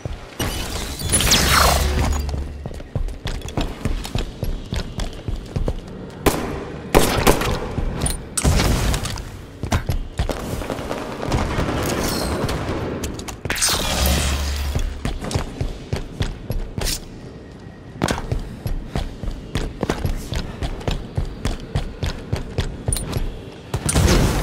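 An energy sword swings with a sharp whooshing hum in a video game.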